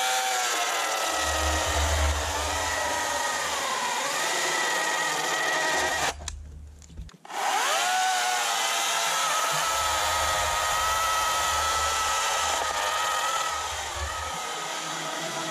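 An electric chainsaw bites into a log, its pitch dropping under load.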